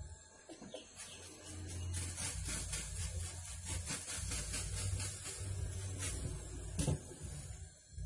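A spray bottle squirts in quick bursts.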